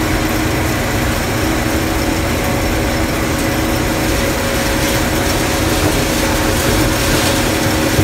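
A combine harvester engine roars steadily from inside the cab.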